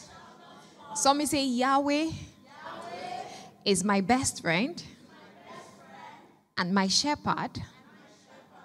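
A woman speaks with animation into a microphone in a large echoing hall.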